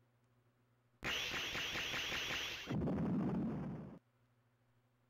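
A game chime rings out with a short burst of electronic sound.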